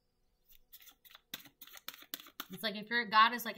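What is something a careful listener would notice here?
Cards flick and riffle in quick shuffling.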